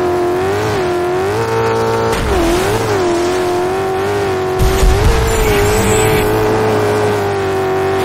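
A racing buggy's engine roars steadily at high revs, its pitch dipping and rising with gear changes.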